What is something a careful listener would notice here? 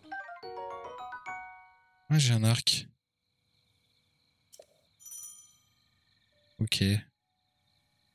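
Bright game menu chimes ring out.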